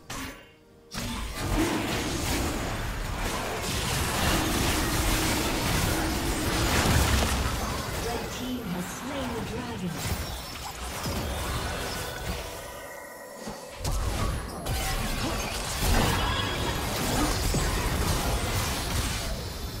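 Game spell effects whoosh, crackle and boom during a battle.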